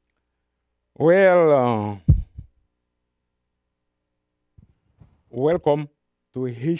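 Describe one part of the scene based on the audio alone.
A man reads aloud slowly and expressively, close to a microphone.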